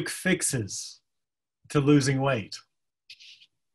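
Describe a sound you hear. A man speaks calmly and warmly over an online call.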